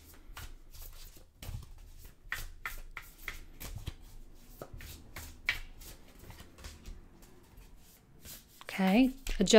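Cards shuffle with quick, soft flicks.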